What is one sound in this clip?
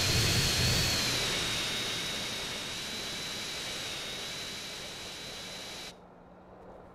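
A jet engine winds down to a lower hum.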